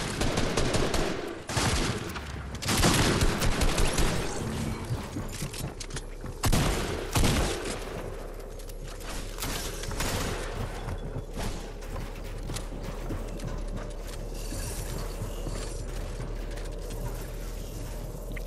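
Building pieces clatter and snap into place rapidly.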